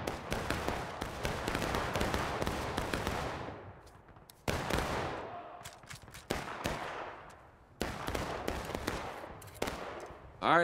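Rifle shots crack and boom in the distance, echoing across open ground.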